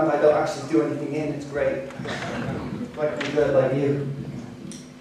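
A man speaks with animation into a microphone in a large hall.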